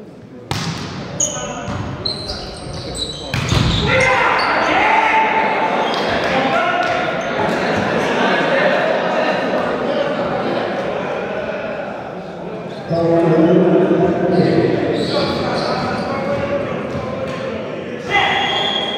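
Men shout and call out to each other in a large echoing hall.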